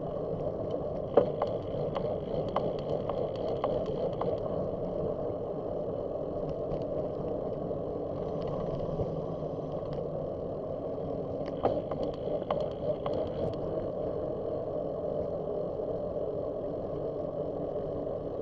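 Wheels roll over rough pavement with occasional rattles and clicks.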